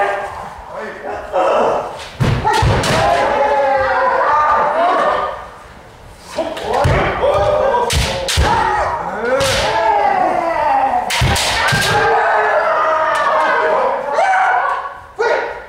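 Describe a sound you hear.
Kendo fencers shout drawn-out battle cries in a large echoing hall.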